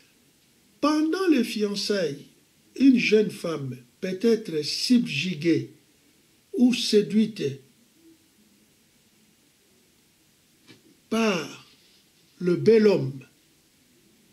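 An elderly man speaks calmly and close by, with pauses.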